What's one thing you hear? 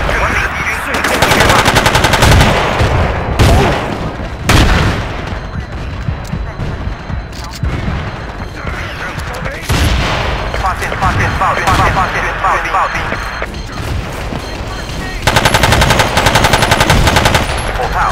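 A rifle fires rapid bursts of gunshots, loud and close.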